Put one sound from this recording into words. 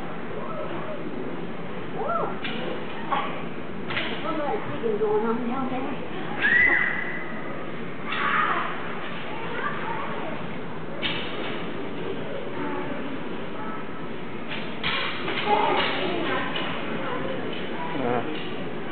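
Skate blades scrape across the ice in a large echoing rink.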